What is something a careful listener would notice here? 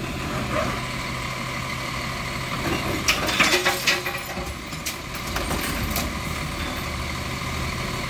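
A mechanical arm on a garbage truck whirs and hums as it lifts a bin.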